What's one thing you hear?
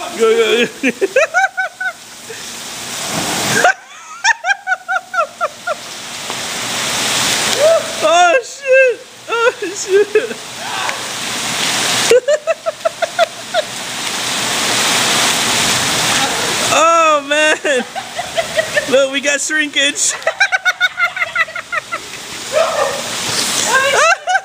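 Heavy rain pours down outdoors, rising and falling in waves.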